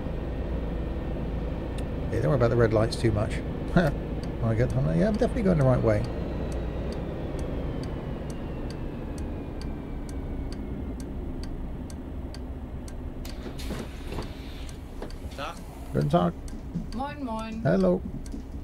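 A bus engine hums low and steadily while driving.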